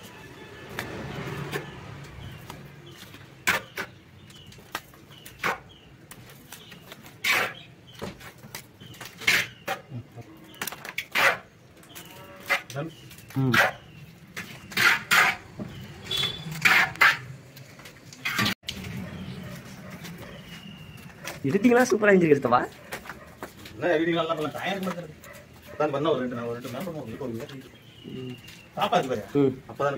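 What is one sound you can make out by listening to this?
A metal trowel scrapes and taps against wet mortar.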